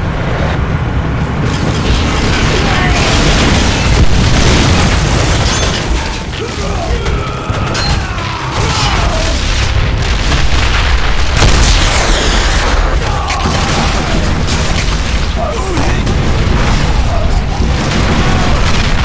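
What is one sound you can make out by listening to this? Gunfire crackles and booms without pause.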